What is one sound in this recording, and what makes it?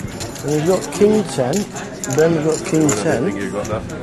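Poker chips clack together in a man's hands.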